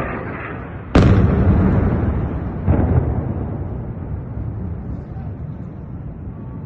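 A distant explosion booms and echoes outdoors.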